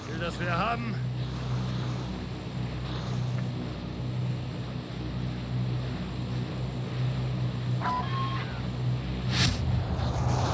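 A large propeller plane's engines drone steadily overhead.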